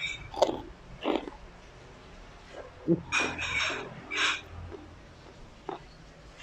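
A man chews food noisily close up.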